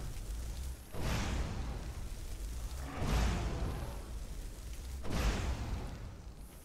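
Fiery blasts explode with deep booms.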